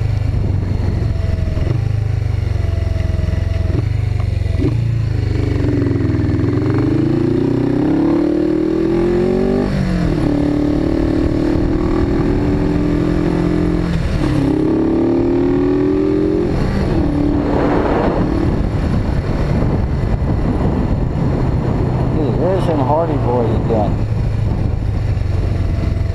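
A motorcycle engine rumbles and revs up and down as the bike rides along.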